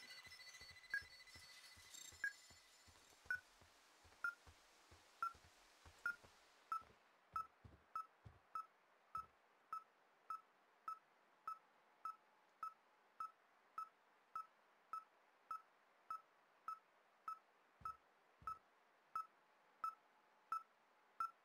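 A handheld receiver beeps steadily, the beeps coming faster over time.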